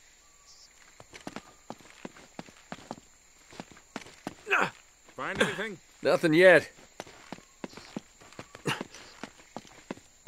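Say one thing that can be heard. Footsteps patter quickly over stone and leaves.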